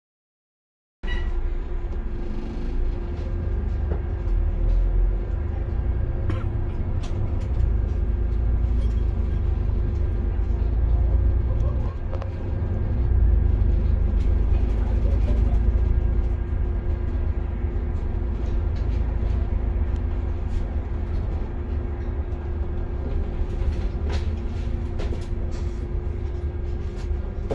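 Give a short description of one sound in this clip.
A bus engine rumbles steadily with a low hum while driving.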